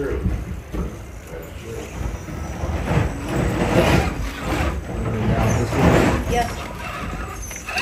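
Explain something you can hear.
A small electric motor whirs as a toy truck crawls over rocks.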